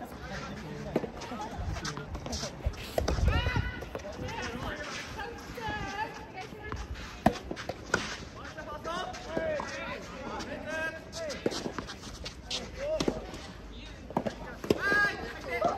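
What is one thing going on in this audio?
Tennis balls are struck with rackets in sharp pops.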